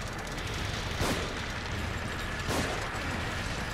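A pistol fires twice.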